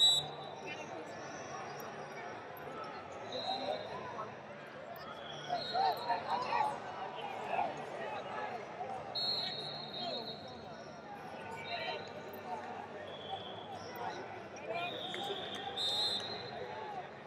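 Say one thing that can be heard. A crowd murmurs and calls out in a large echoing arena.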